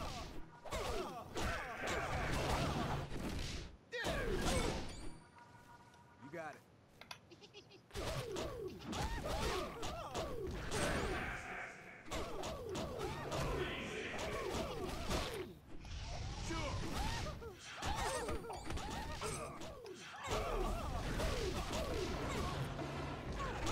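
Punches and blows thud in a fight.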